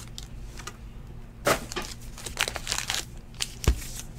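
A stack of cards rustles and clicks as it is handled.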